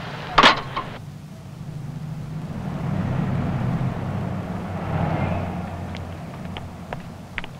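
Cars pass by on a street.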